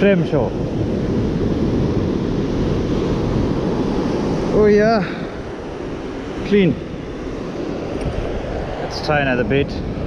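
Surf breaks on a sandy beach.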